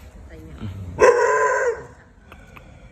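A dog lets out a loud, sharp yelp.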